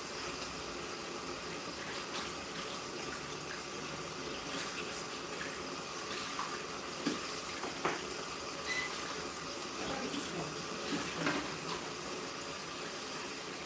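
Water from a shower head sprays and splashes steadily.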